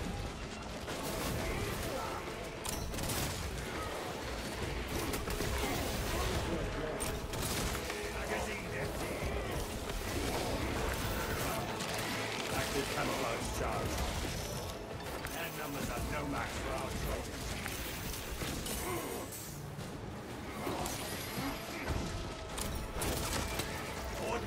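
Monsters screech and snarl.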